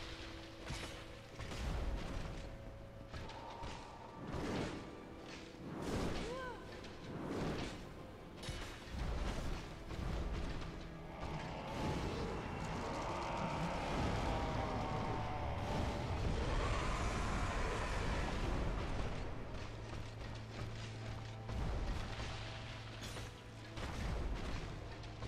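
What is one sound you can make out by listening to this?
Swords clash and clang with sharp hits.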